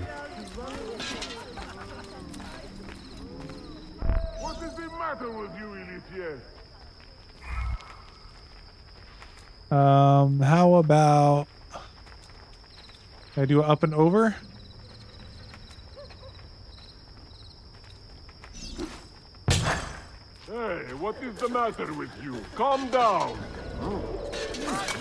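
Footsteps walk on cobblestones.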